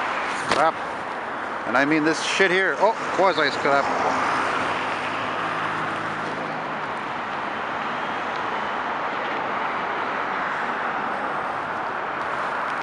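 Steady traffic roars past on a busy highway.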